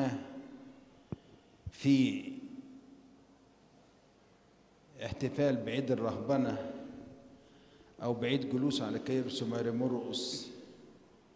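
An elderly man speaks calmly into a microphone in a slightly echoing room.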